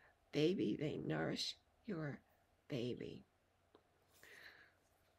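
An older woman speaks with animation close to a microphone.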